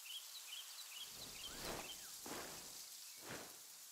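Footsteps scrape on rocky ground.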